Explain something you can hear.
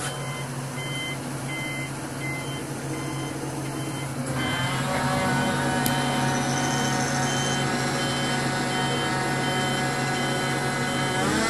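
A truck engine hums steadily from inside the cab, growing louder partway through.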